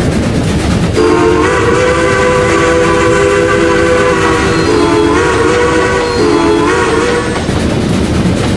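A steam locomotive's whistle blows a long, loud chord.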